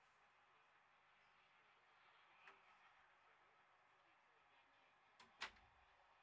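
A mechanical lure whirs along its rail.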